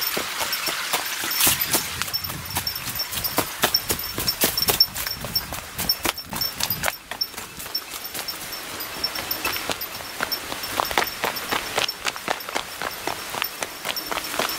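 Quick footsteps crunch over dry leaves and grass.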